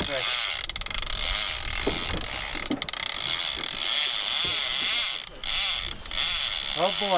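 A fishing reel's drag whines steadily as line is pulled out.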